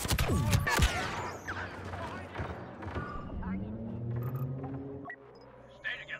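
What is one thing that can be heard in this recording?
Laser guns fire in rapid bursts with a loud blast.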